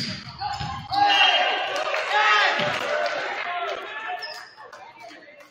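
A crowd cheers after a point.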